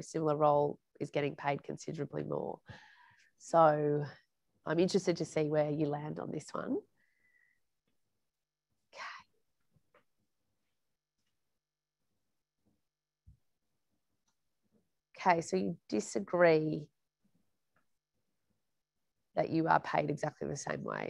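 A woman speaks calmly and warmly into a clip-on microphone, with pauses.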